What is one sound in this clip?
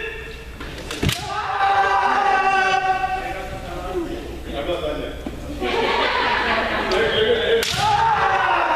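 Bamboo swords strike with sharp cracks.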